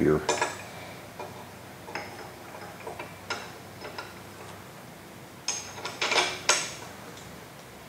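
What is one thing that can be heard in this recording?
Metal engine parts clink and click as hands fit them together.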